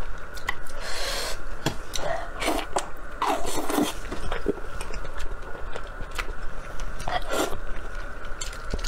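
A young man slurps and chews food noisily close to a microphone.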